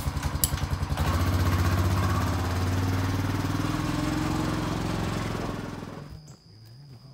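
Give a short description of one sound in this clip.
A quad bike engine revs and pulls away.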